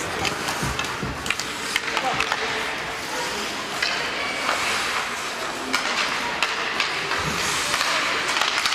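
Ice hockey skates scrape and carve across the ice in an echoing indoor rink.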